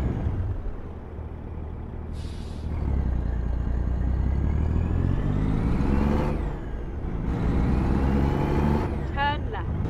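A truck engine rumbles and revs, rising in pitch and dropping as it shifts gears.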